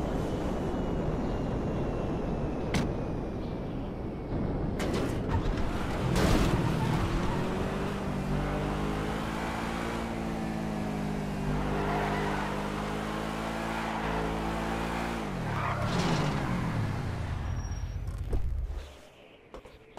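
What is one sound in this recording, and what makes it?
A sports car engine roars as the car races along.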